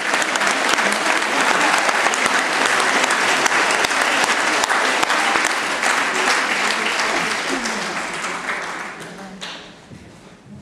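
An audience applauds loudly in a large hall, then the applause fades away.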